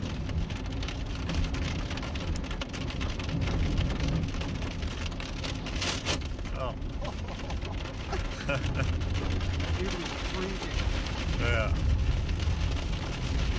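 An engine rumbles low and steady inside a car.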